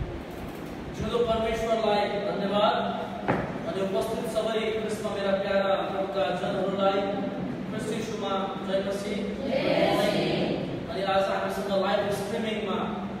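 A young man speaks at a lectern in an echoing room.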